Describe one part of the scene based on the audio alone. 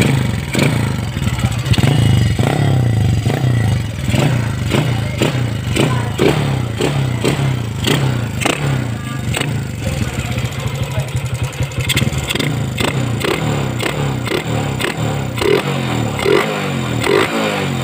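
A motorcycle engine idles close by with a steady, uneven putter.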